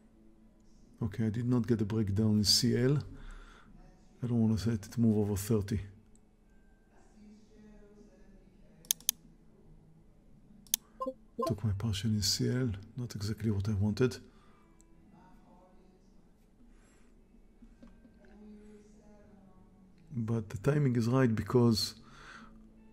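An older man speaks calmly and close to a microphone, in short bursts with pauses.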